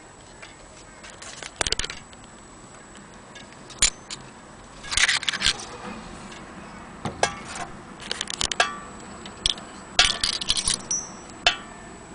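Brass clock weights clink and knock as a hand moves them.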